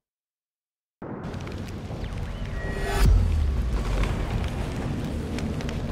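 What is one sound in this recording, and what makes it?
Fires crackle and roar nearby.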